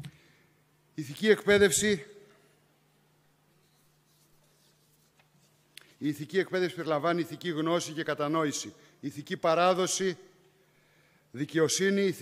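A man speaks calmly into a microphone in a large room, with pauses between phrases.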